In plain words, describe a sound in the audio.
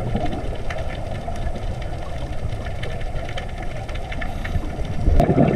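A diver's breathing bubbles rumble and gurgle underwater.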